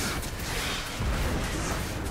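A fiery blast bursts loudly.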